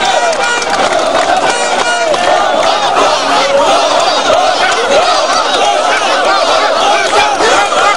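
A large crowd of men and women shouts and chants loudly outdoors.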